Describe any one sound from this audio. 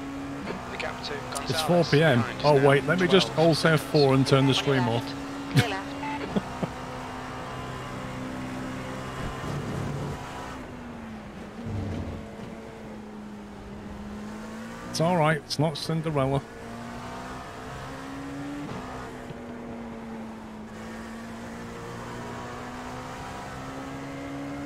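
A racing car engine hums steadily and shifts pitch with the gears.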